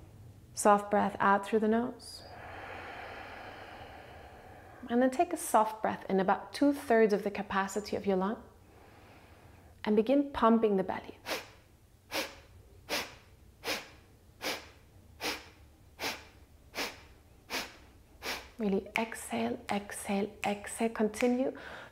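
A young woman speaks calmly and softly close by.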